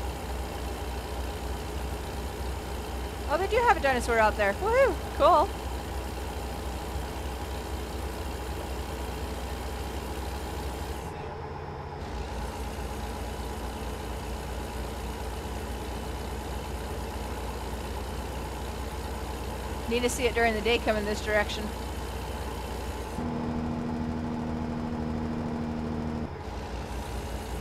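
A truck engine drones steadily.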